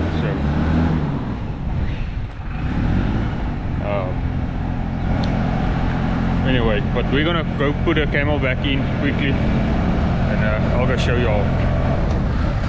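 A young man talks casually and close to the microphone.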